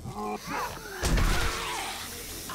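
A heavy club thuds into a body.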